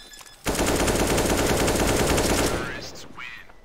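A rifle fires a short burst of gunshots.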